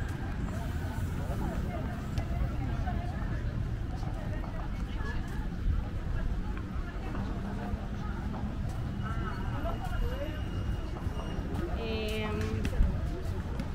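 People chatter nearby and in the distance.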